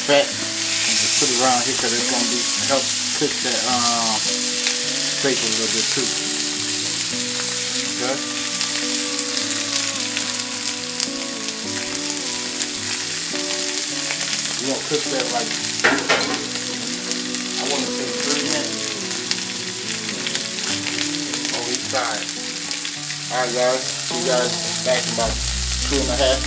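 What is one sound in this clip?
Steaks sizzle loudly in a hot pan.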